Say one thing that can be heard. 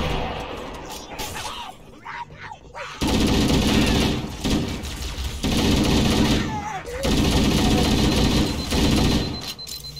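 Plasma bolts whine and crackle in bursts.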